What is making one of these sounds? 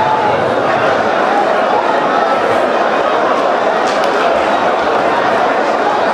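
A crowd of men prays aloud together in a loud, echoing hall.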